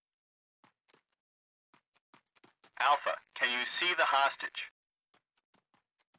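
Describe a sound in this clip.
Footsteps run across dirt.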